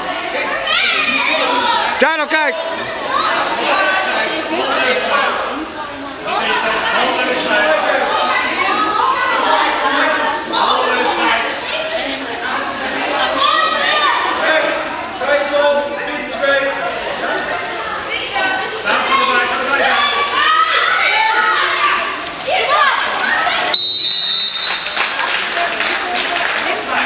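Children shout and call out in an echoing indoor pool hall.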